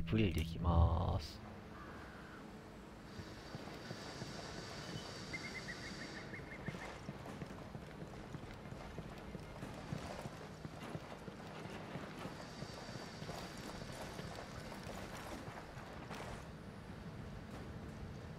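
Footsteps walk on hard stone ground.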